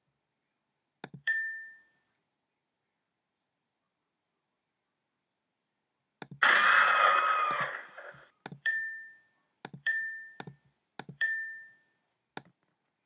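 A bright chime rings as an answer is clicked.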